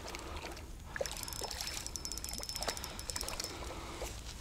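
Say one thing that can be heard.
A fishing reel clicks rapidly as its line is wound in.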